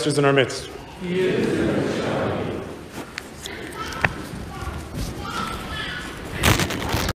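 A congregation sings softly together.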